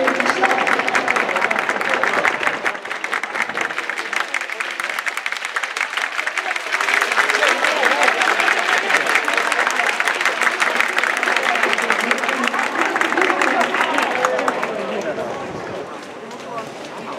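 A crowd in a large open stadium cheers and claps loudly.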